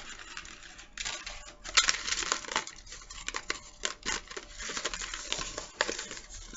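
Plastic packaging rustles and crinkles in a woman's hands.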